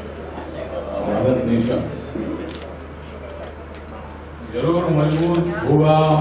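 A man speaks loudly into a microphone over a loudspeaker.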